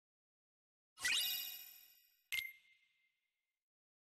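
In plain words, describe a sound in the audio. A bright electronic chime sounds twice.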